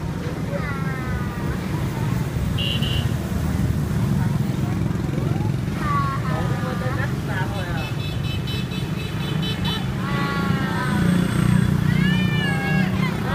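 A woman talks in a high, playful voice close by.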